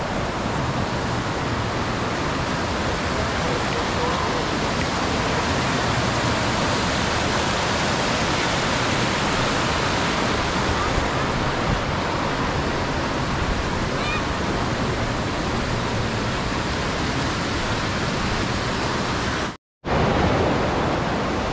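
Water rushes steadily over rocks in a stream.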